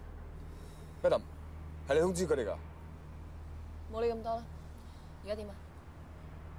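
A young woman speaks quietly and tensely up close.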